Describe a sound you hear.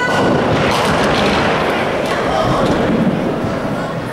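Bowling pins clatter as a ball crashes into them.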